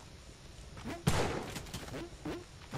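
A game explosion bursts with a loud boom.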